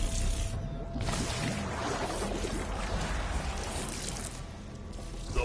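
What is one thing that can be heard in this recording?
Water splashes and sprays with a loud rushing burst.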